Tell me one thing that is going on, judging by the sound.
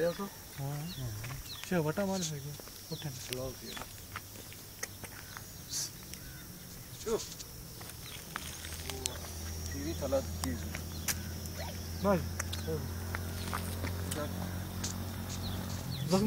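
A cow licks a newborn calf with wet, rasping strokes.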